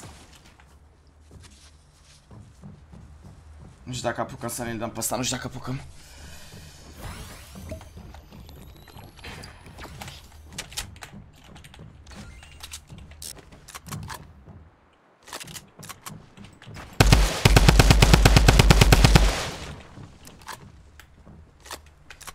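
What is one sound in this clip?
A young man talks into a microphone with animation.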